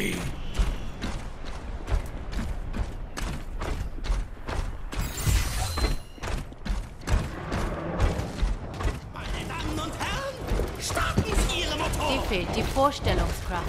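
Heavy metallic footsteps clank steadily on a hard floor.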